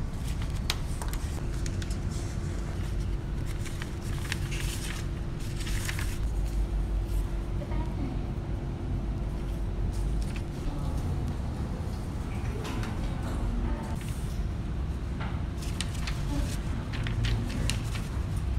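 Paper sheets rustle as they are turned.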